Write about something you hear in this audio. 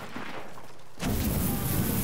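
A loud explosion bursts close by with a heavy roar.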